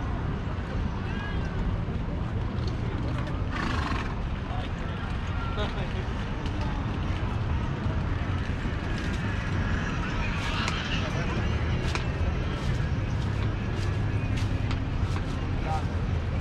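People chatter in the distance.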